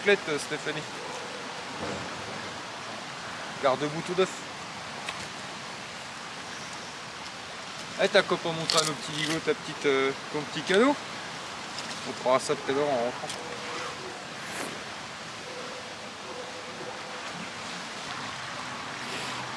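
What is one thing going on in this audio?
A stream rushes and gurgles steadily.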